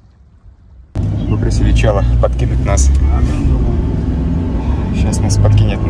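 A young man talks close to the microphone.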